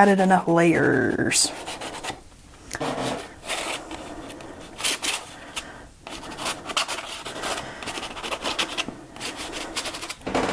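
A palette knife scrapes paint across paper.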